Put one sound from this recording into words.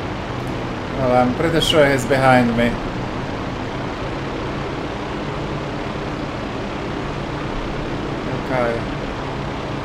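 A young man speaks briefly and with animation into a close microphone.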